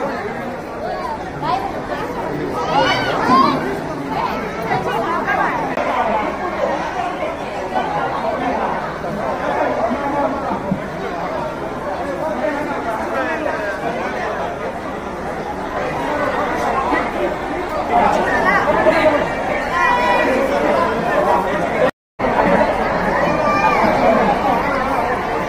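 A crowd of men and women chatter and call out loudly all around.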